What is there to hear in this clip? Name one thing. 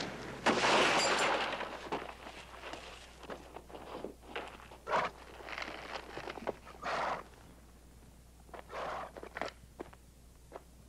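Horse hooves clop on stony ground.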